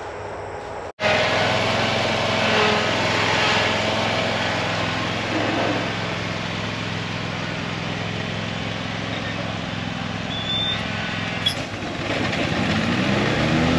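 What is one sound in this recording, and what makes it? A riding mower's engine drones steadily nearby.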